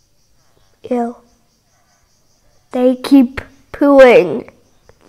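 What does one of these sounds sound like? A young girl speaks close to a microphone in short, lively phrases.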